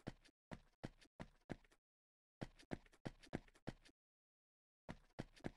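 Footsteps thud quickly on dirt in short runs.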